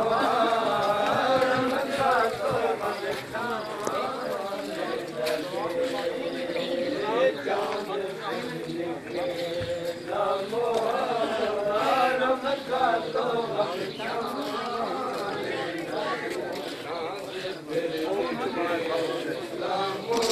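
A group of men chant loudly in unison outdoors.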